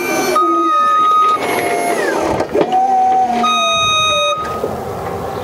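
An electric motor whines and changes pitch.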